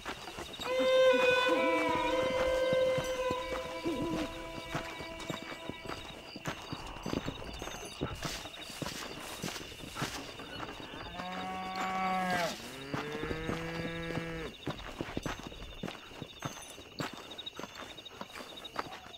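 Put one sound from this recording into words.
Footsteps crunch softly on dirt and snow.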